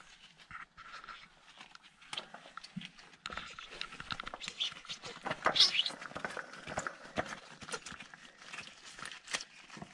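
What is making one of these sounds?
A metal oil filter scrapes and clicks as it is screwed on by hand.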